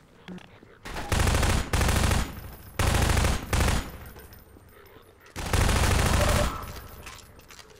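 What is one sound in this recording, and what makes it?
Rapid gunfire bursts loudly in an echoing hall.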